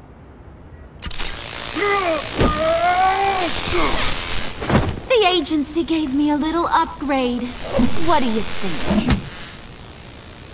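A heavy hammer crackles with electricity.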